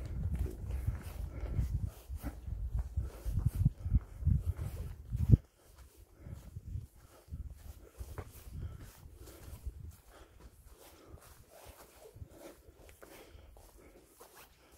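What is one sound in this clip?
Footsteps crunch on dry leaves and dirt along a trail.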